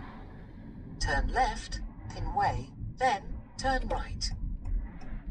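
A man speaks with animation close by inside a car.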